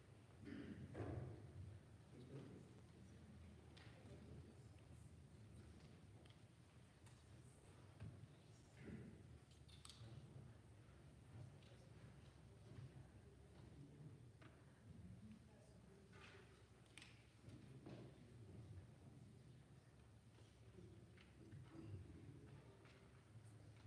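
A congregation murmurs and shuffles quietly in a large echoing hall.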